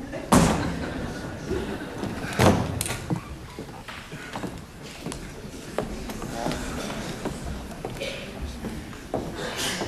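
High heels click on a wooden stage floor.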